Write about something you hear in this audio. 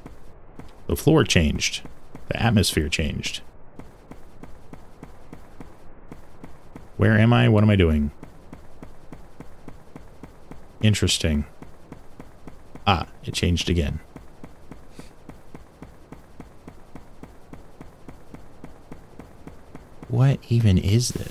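A young man speaks in short bursts close to a microphone.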